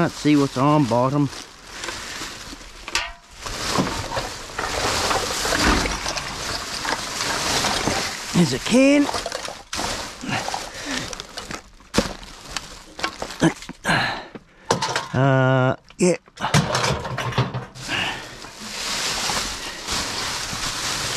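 Plastic bags rustle and crinkle as gloved hands rummage through rubbish.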